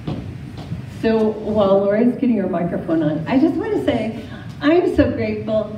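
An older woman speaks with animation through a microphone and loudspeaker in a large echoing hall.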